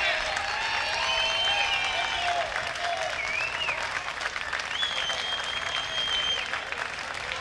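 Rain patters on umbrellas.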